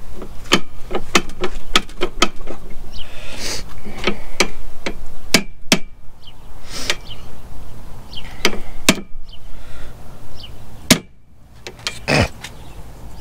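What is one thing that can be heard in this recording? Metal tools click and clank against a machine part.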